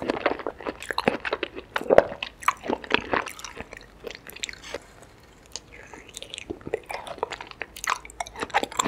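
A young woman chews wetly and smacks her lips close to a microphone.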